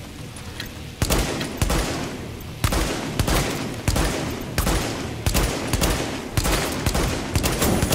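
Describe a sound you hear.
Rapid gunfire crackles and echoes in bursts.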